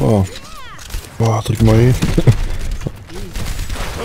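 Gunfire and explosions crackle in a video game.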